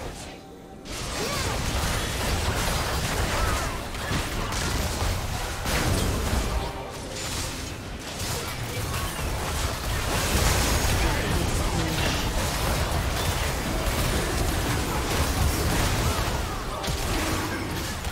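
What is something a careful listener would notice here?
Spell effects and weapon hits clash rapidly in a video game battle.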